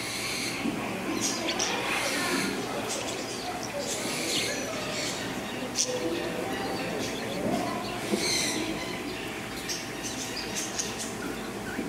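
Ducklings shuffle and scratch in dry wood shavings.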